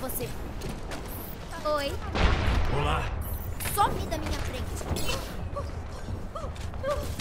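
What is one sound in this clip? Video game battle effects bang and whoosh.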